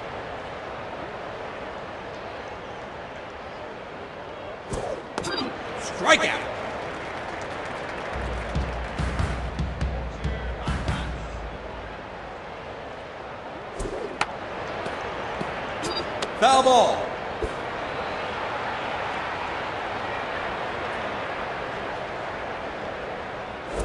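A stadium crowd murmurs.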